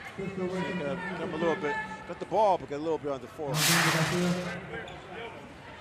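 A crowd of spectators shouts and cheers in an echoing gym.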